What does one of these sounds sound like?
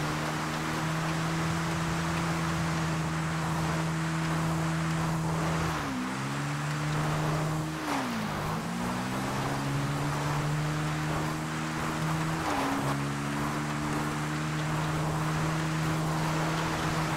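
A motorcycle engine hums steadily, dipping briefly in pitch as the rider shifts and slows.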